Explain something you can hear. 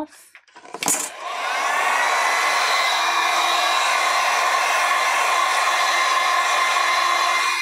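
A heat gun blows with a steady, whirring roar.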